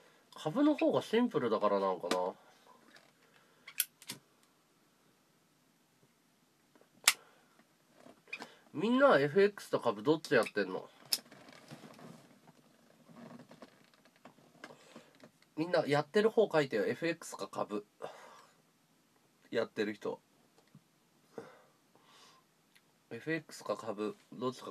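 A man talks casually in short bursts, close by.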